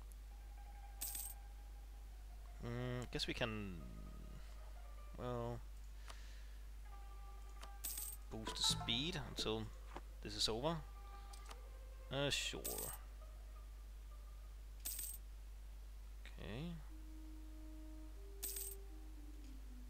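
Short game interface clicks and chimes sound now and then.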